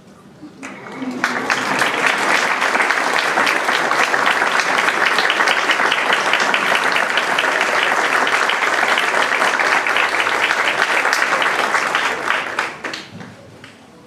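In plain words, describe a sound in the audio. An audience claps and applauds loudly, then the applause fades.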